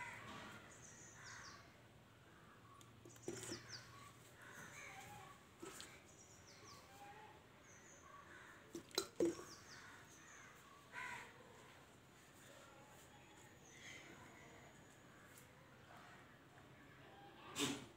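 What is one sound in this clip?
Juice pours from a plastic bottle into a glass.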